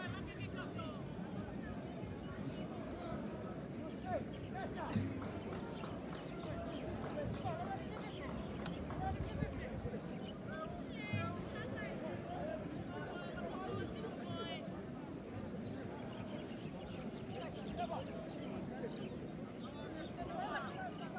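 Distant young men shout to each other across an open field outdoors.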